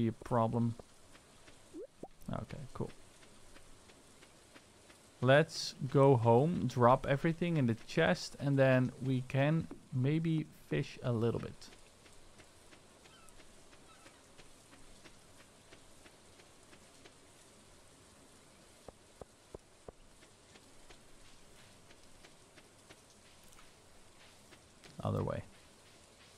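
A young man talks casually and with animation into a close microphone.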